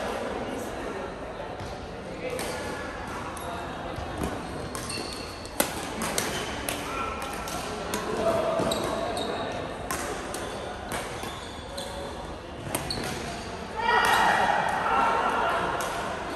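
Men call out and chatter in a large echoing hall.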